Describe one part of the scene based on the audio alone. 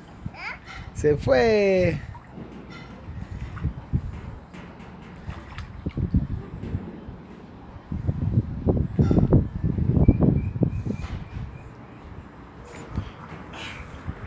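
Water splashes as a child wades in a paddling pool.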